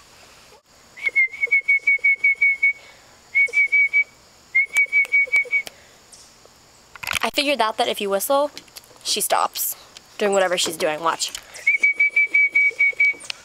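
A puppy whimpers in short, high, repeated cries.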